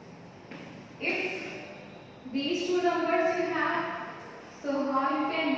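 A young woman speaks clearly, as if teaching.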